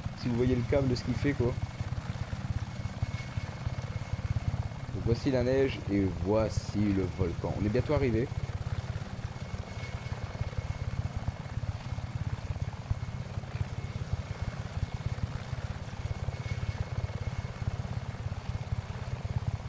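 A helicopter's rotor thumps steadily and loudly.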